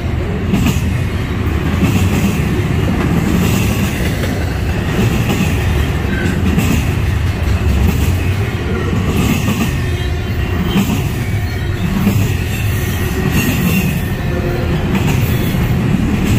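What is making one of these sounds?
A long freight train rumbles past close by on the rails.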